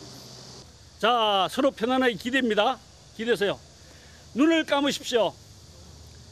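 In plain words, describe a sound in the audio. A middle-aged man speaks with animation outdoors.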